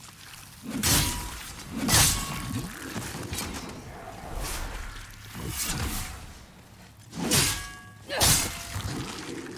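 Metal weapons clash with sharp ringing blows.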